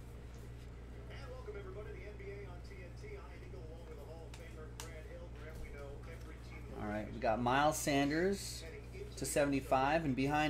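Trading cards shuffle and slide against each other in hands.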